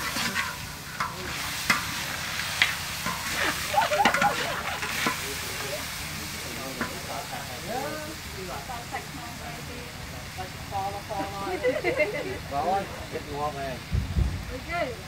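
Food sizzles in a hot wok.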